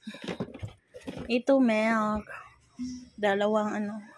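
A carton scrapes against cardboard as it is moved in a box.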